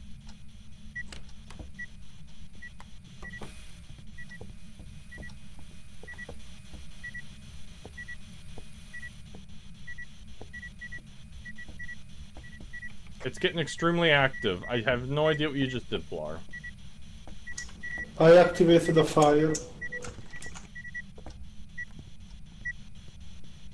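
An electronic meter beeps in short, steady blips.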